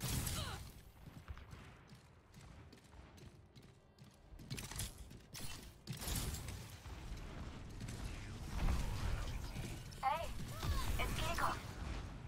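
A weapon fires bursts of energy shots.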